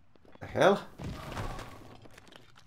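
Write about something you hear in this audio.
A game character lands with a soft thud on rock.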